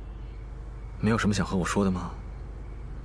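A young man speaks softly close by.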